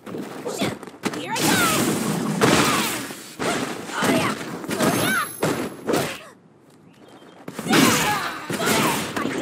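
Punches and kicks land with sharp smacks and thuds.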